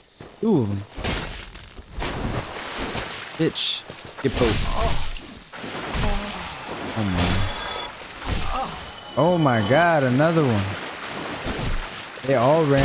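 Swords clash and armour clanks.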